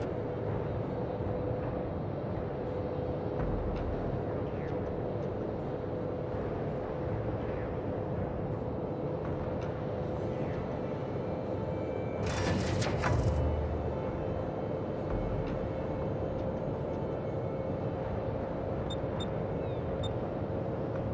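A ship's engine rumbles steadily.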